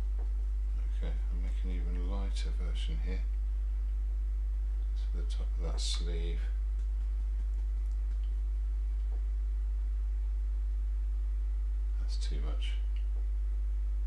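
A middle-aged man mumbles quietly to himself.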